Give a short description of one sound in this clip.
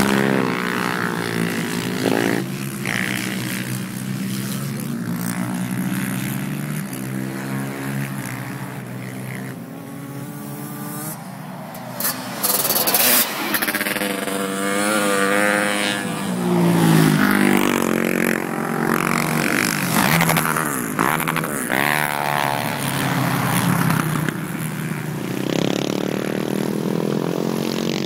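Quad bike engines roar and rev as they race around, rising and falling in pitch.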